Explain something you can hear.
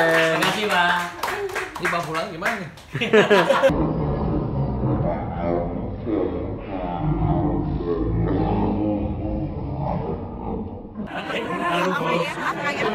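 A man laughs.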